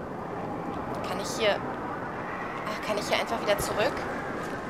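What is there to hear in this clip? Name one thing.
A young woman speaks quietly into a close microphone.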